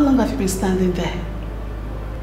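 A young woman speaks in a low, tense voice close by.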